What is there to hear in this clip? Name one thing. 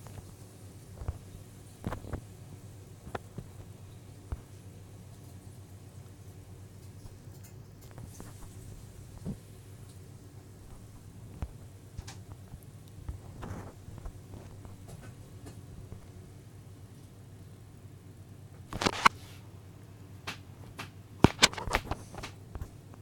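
A game gives short, sharp clicks and pops every so often.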